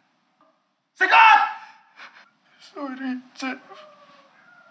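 A second young man speaks urgently, close by.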